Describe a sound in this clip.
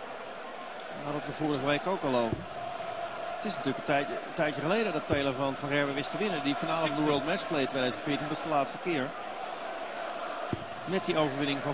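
A large crowd sings and chants loudly.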